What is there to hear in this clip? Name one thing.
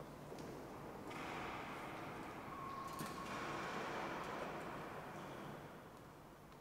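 Footsteps shuffle across a stone floor in a large echoing hall.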